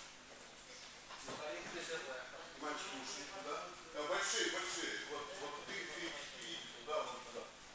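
Bare feet pad and thud on mats.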